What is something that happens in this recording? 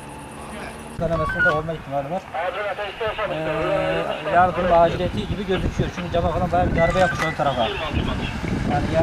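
A man talks on a phone nearby.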